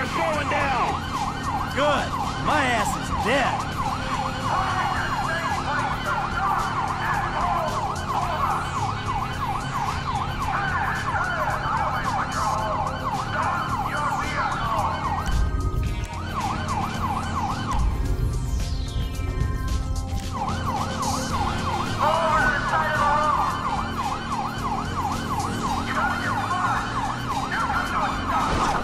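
A siren wails in a rapid yelp, with short breaks.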